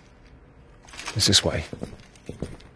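A man speaks briefly and firmly.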